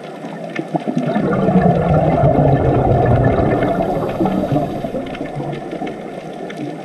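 Air bubbles from divers gurgle and rush loudly underwater.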